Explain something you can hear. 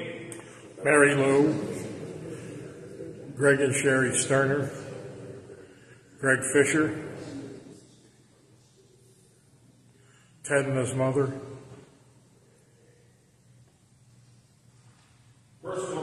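A man sings short phrases in a large echoing room, with pauses between them.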